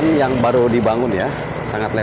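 A motor scooter hums past nearby.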